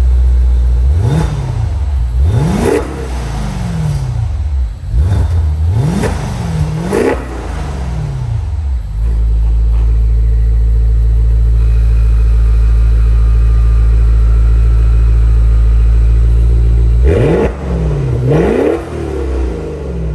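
A car engine revs up sharply and drops back, several times, echoing in an enclosed space.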